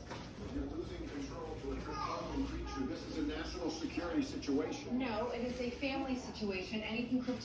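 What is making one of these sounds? A man talks through a television's speaker.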